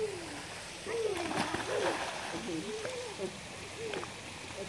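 A swimmer splashes through water.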